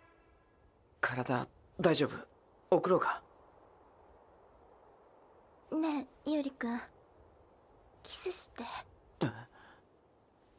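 A young woman speaks softly and shyly.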